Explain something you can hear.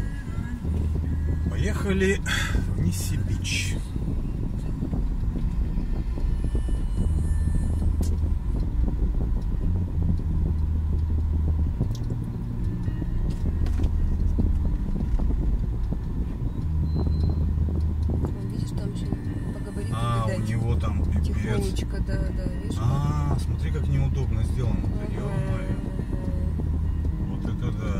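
A truck's diesel engine rumbles steadily close by.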